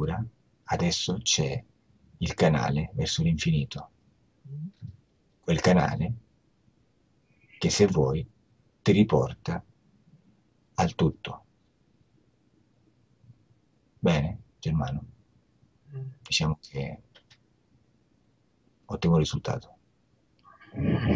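A man speaks calmly through an online call, with pauses between phrases.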